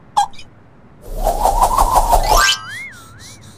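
A cartoon cat shakes its fur with a loud rustling burst.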